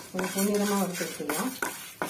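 A spatula scrapes and stirs dry spices in a metal pan.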